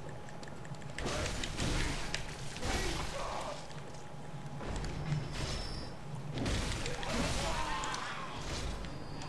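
Blades slash and flesh splatters in a game fight.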